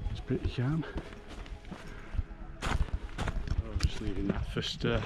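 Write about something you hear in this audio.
Footsteps crunch on a rocky path.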